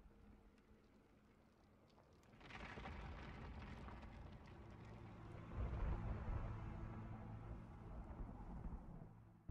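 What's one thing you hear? Fires crackle and burn.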